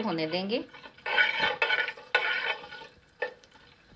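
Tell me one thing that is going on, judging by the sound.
Seeds crackle and sizzle in hot oil.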